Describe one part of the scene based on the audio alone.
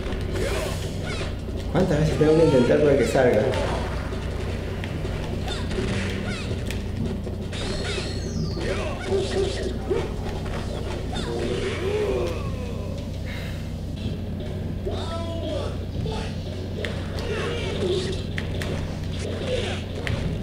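Punches and kicks thud in a video game fight.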